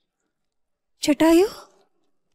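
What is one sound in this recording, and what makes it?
A woman speaks sharply.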